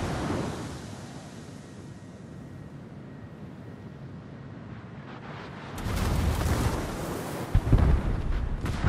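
Shells burst and splash in the water nearby.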